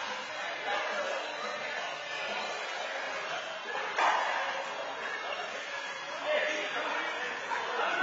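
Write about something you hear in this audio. A handball smacks against a wall in an echoing indoor court.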